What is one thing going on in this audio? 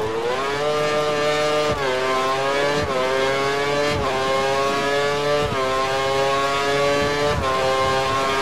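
Gear shifts click sharply as the engine note jumps.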